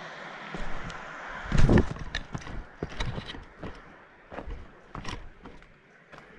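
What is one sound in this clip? Footsteps crunch on rocky gravel close by.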